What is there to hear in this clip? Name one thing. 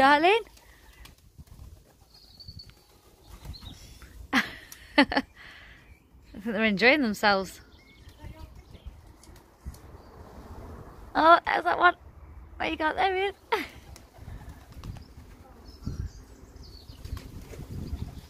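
A pigeon's wings flap as it flies.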